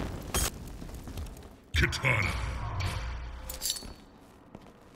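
Video game menu sounds whoosh and clang as characters are picked.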